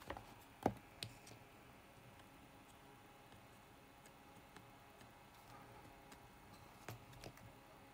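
A circuit board clicks and taps as fingers handle it.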